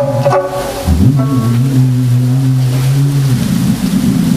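A man sings long, low held notes outdoors.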